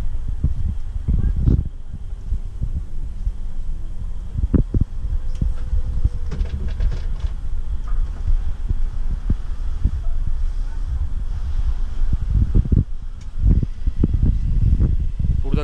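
A bus rattles and thumps over bumps.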